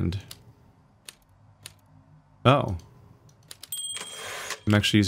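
Typewriter keys clack a few times.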